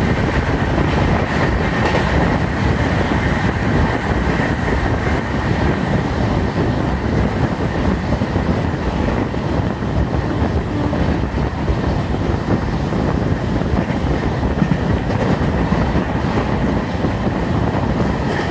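Wind rushes loudly past an open train door.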